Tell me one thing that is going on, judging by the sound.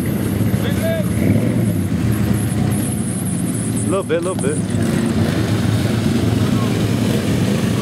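A pickup truck engine rumbles as it drives through mud.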